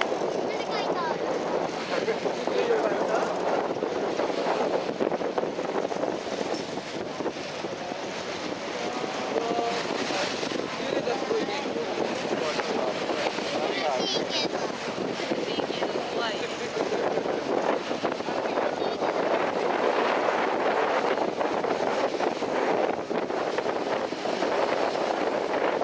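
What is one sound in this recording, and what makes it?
Water splashes and rushes against the hull.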